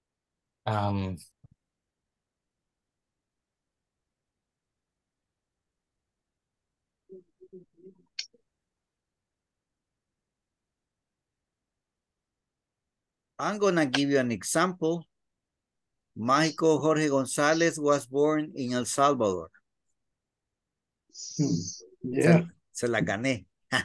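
A man speaks through an online call, in short bursts with long pauses.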